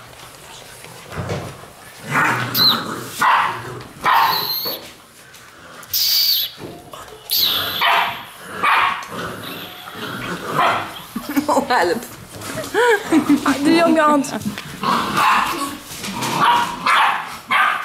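Puppy claws patter and scrabble on a wooden floor.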